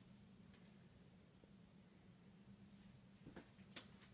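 Clothes on hangers rustle as they are brushed aside.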